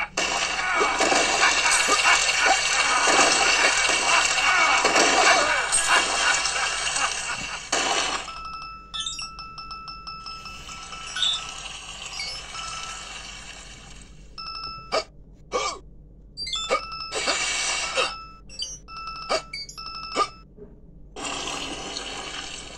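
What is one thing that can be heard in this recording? Game music and sound effects play from phone speakers.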